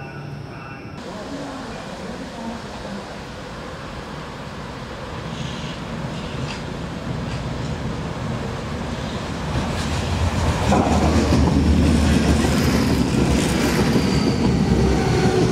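A train approaches on the tracks outdoors and rumbles louder as it passes close by.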